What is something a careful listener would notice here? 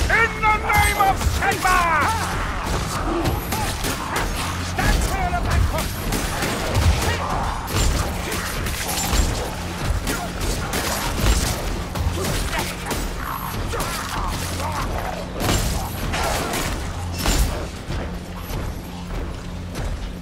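Blades hack and slash into flesh with wet, heavy impacts.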